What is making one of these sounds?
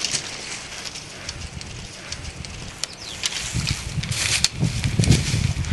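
Dry branches snap and crackle as someone pushes through them.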